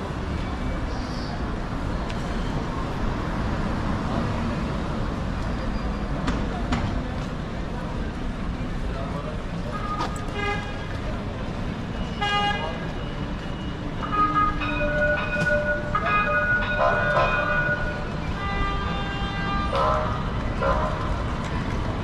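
Traffic and city bustle rumble steadily outdoors.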